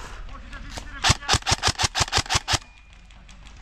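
A rifle fires a quick string of sharp shots close by.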